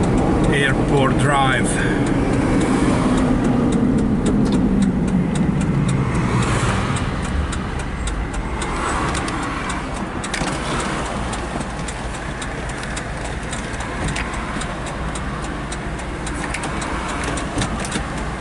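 Tyres roll on the road and slowly quieten as the car slows.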